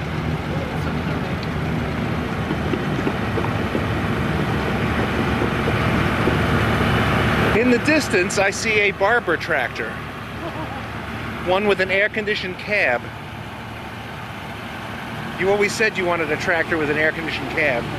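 A tractor engine rumbles steadily as the tractor slowly approaches.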